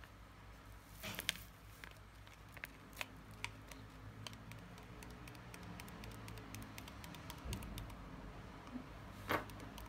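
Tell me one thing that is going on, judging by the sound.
A plastic bag crinkles in someone's fingers.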